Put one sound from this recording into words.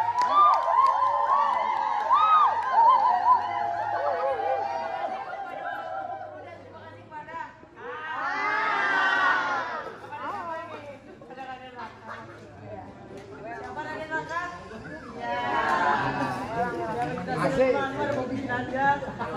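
A crowd of young women screams and cheers loudly at close range.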